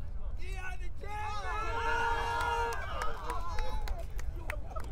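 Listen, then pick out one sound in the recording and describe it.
A group of men cheer and shout together loudly.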